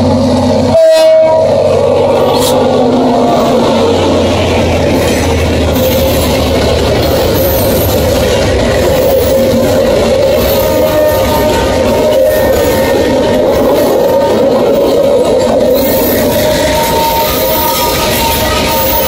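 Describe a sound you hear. Freight wagons clatter and rumble along the rails.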